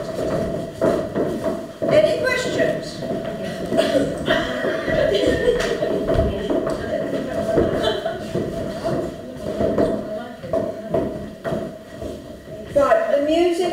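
Women chat nearby.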